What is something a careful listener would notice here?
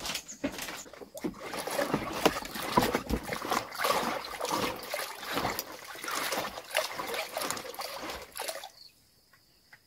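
Hands splash and swish food in water.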